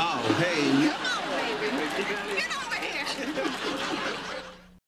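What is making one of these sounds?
A woman shouts excitedly close by.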